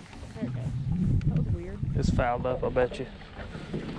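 A fishing reel clicks.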